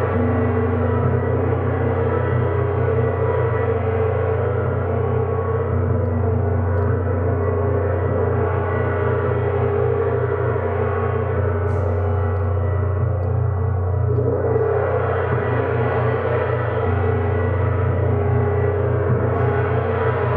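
A large gong hums and roars in a deep, steady swell as it is rubbed and struck softly.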